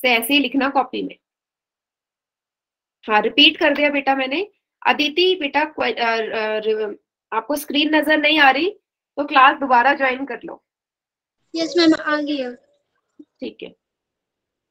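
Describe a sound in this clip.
A young woman speaks calmly, as if teaching, heard through an online call.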